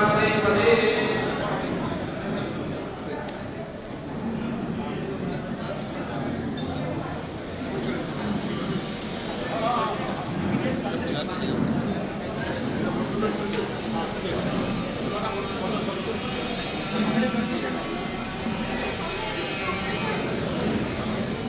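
A crowd chatters softly in the background.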